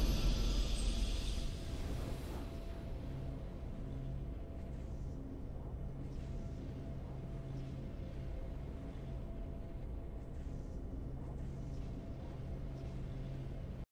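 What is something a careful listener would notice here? A triumphant game fanfare plays, then settles into a low, steady hum.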